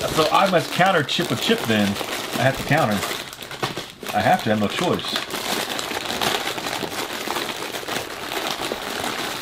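Cardboard rustles as a box is handled.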